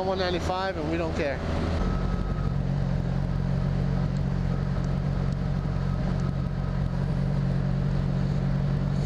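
A motorcycle engine drones steadily at cruising speed.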